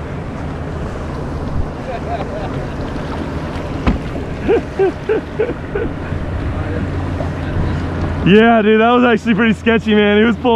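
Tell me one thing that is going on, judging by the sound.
Small waves slap against the side of a kayak.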